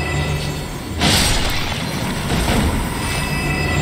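A heavy blow strikes with a crunching impact.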